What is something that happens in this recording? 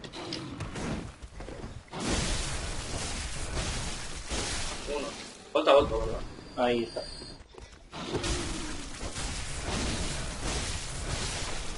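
Footsteps scrape over wet stone.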